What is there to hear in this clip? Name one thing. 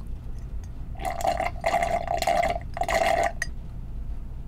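A man sucks a drink loudly through a straw.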